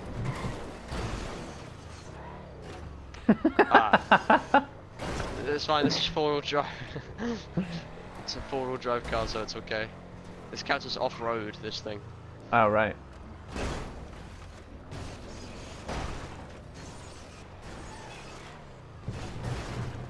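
Tyres bump and scrape over ledges.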